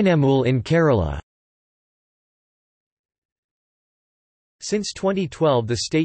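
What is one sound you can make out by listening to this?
A middle-aged woman speaks clearly, close to a microphone.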